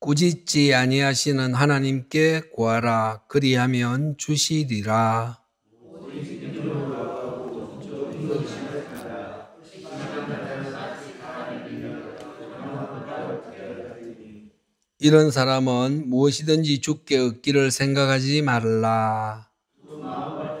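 A middle-aged man speaks firmly through a microphone in an echoing hall.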